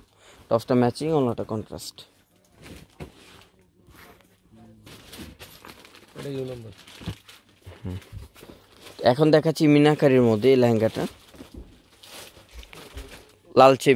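Heavy fabric rustles as it is unfolded and spread out.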